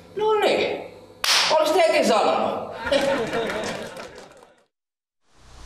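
A young man shouts urgently up close.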